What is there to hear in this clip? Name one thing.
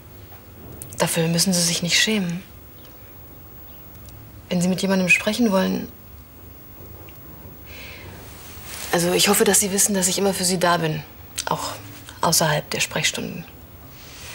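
A young woman speaks softly and gently nearby.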